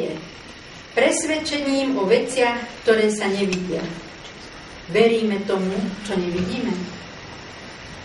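An elderly woman reads out aloud in a slow, sing-song voice close by.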